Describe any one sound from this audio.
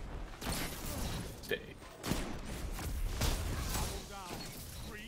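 Guns fire in rapid bursts with loud blasts.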